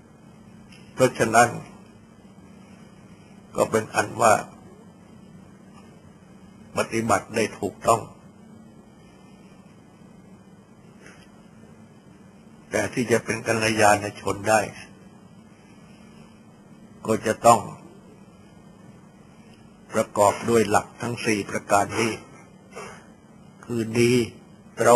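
An elderly man speaks calmly in short phrases with long pauses.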